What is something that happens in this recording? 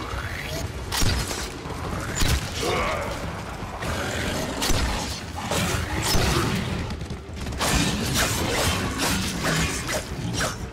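Metal blows clang sharply.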